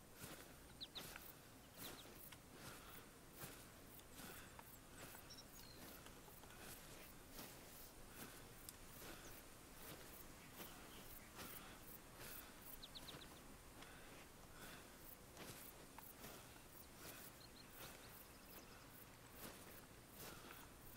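A man talks casually into a headset microphone.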